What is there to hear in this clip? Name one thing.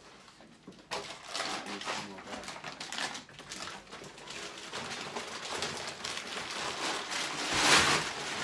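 Rubble rustles and clatters in a plastic sack.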